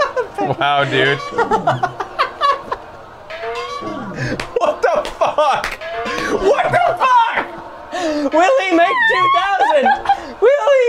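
A young woman laughs and shrieks.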